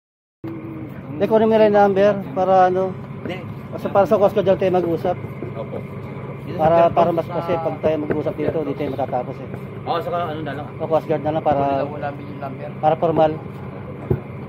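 Men talk with animation close by outdoors.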